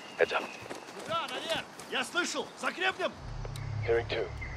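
A man calls out urgently nearby.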